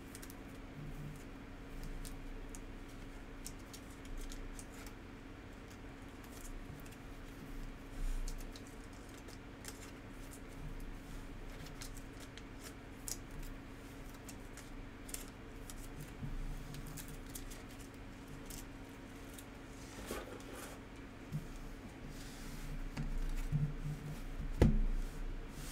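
Trading cards rustle and click as hands handle them.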